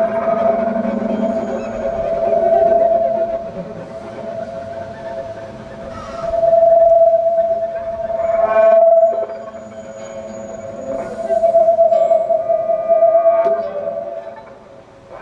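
An acoustic guitar plucks chords.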